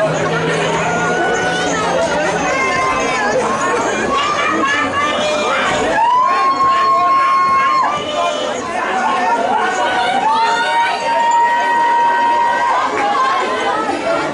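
Young men shout and grunt as they push against each other outdoors.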